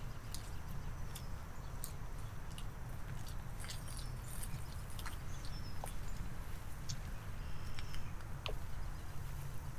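A woman's footsteps pad along a paved path.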